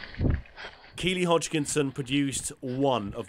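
A man speaks while running, close to a microphone.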